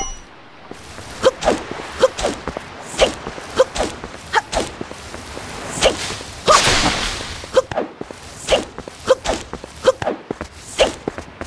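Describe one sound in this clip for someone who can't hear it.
Light footsteps patter quickly on grass.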